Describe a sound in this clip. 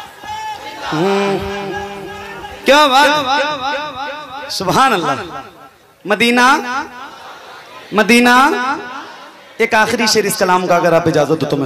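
A man sings through a microphone in a melodic, drawn-out voice.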